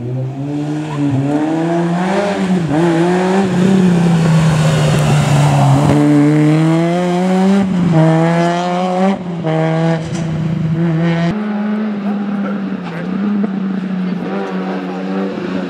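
A rally car engine revs hard and roars past, rising and falling in pitch.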